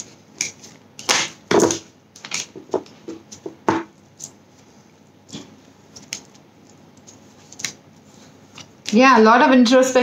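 A small box clicks and rustles in a woman's hands.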